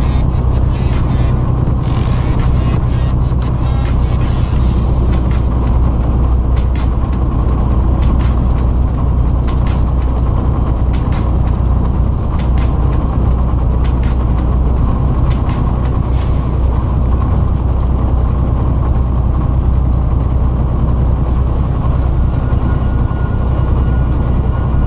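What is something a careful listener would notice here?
Tyres roar on the road.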